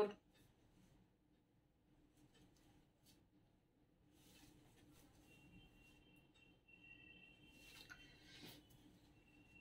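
Cloth rustles as a woman unfolds fabric.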